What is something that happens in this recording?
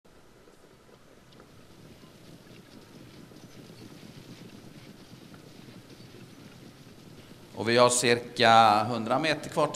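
Many horses' hooves patter on a dirt track.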